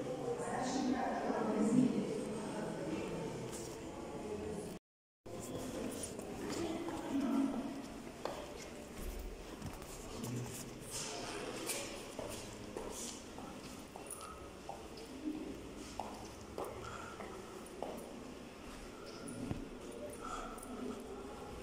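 Footsteps echo on stone floors and stairs in a large echoing hall.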